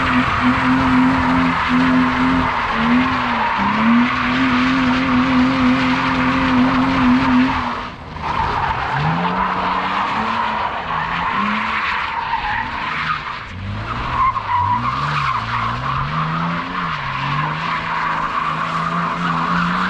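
An inline-six BMW coupe revs hard while drifting.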